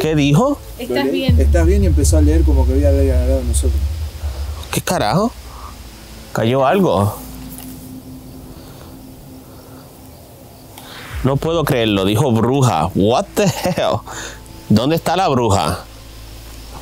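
A young man speaks quietly and close by, in short bursts.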